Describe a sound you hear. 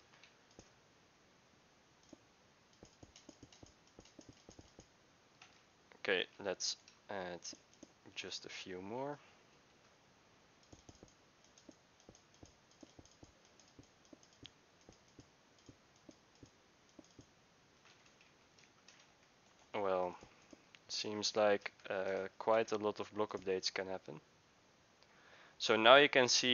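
Game blocks are placed and broken with soft, short clicks.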